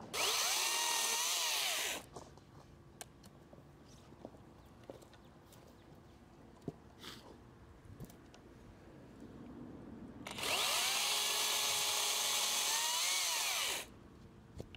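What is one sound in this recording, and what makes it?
An electric chainsaw whirs loudly as it cuts through wood.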